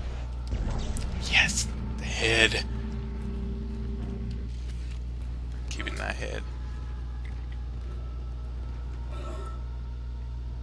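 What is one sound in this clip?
A man speaks casually into a nearby microphone.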